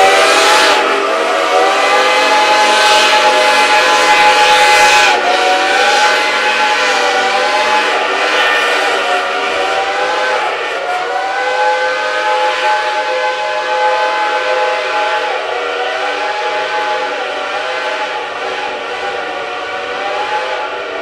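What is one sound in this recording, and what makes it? Steam locomotive whistles blow loudly and hold long chords.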